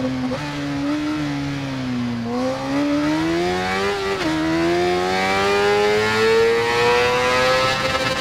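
An inline-four sport bike engine revs higher as it accelerates, dipping briefly when it shifts up a gear.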